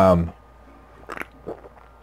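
A man gulps a drink from a can.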